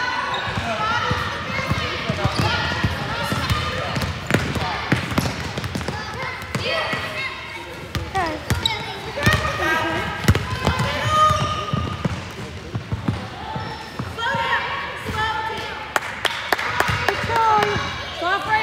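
Young girls call out and cheer in a large echoing gym.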